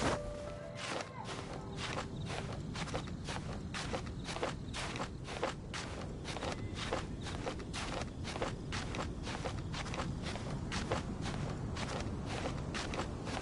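Quick, regular scraping footsteps climb over stone.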